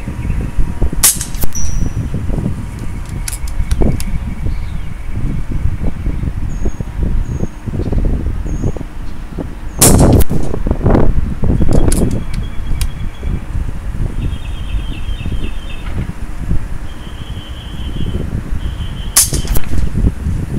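A PCP air rifle fires with a sharp crack.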